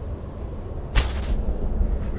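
A bowstring twangs as an arrow is loosed.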